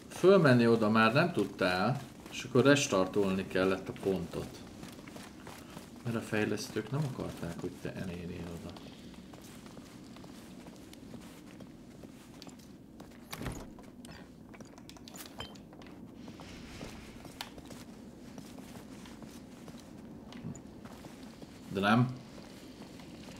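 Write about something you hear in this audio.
A middle-aged man talks casually into a microphone, close by.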